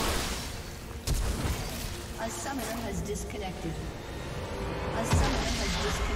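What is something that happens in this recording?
Fantasy battle sound effects whoosh and crackle.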